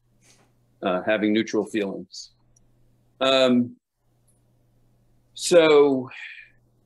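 A middle-aged man speaks calmly, close to the microphone, heard through an online call.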